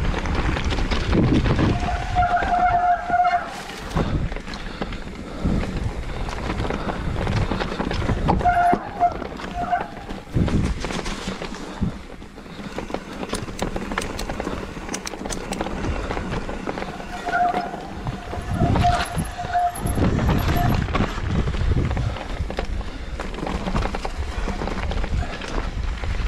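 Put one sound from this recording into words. Wind rushes past loudly outdoors.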